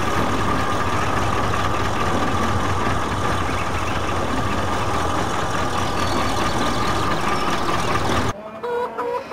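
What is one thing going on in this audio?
A combine harvester engine runs with a loud, steady rumble.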